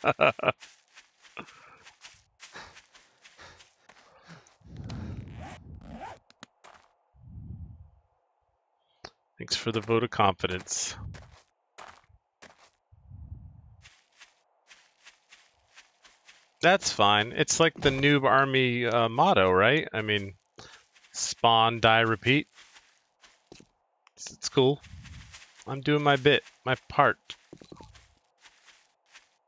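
Footsteps crunch on gravel and rustle through grass.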